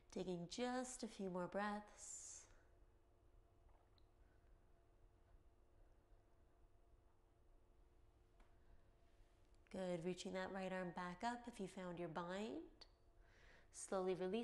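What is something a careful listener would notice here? A young woman speaks calmly and clearly into a close microphone, pausing between phrases.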